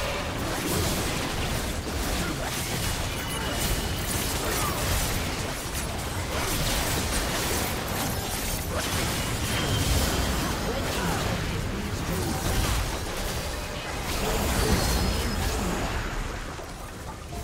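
Game spells crackle and clash in a busy fight.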